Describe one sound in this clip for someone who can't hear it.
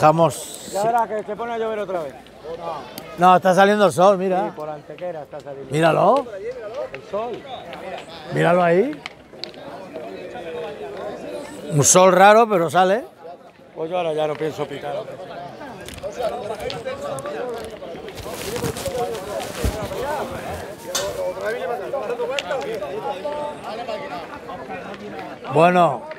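Several men talk in the background outdoors.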